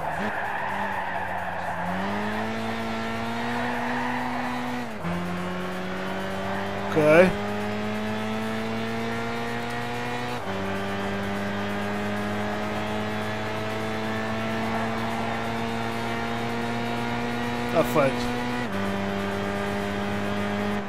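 A car engine roars and climbs in pitch, dropping briefly at each gear change.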